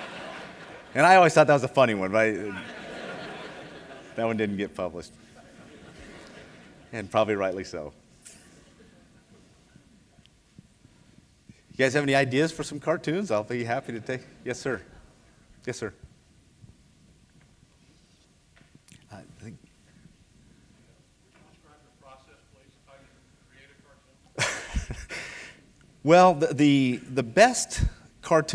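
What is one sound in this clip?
A middle-aged man speaks calmly through a microphone in a large echoing hall, with pauses.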